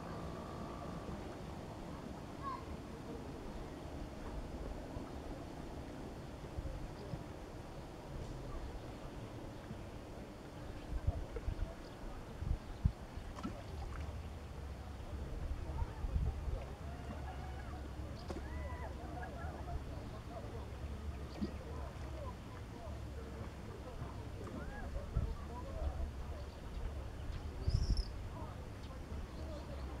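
Water laps gently, outdoors in a light breeze.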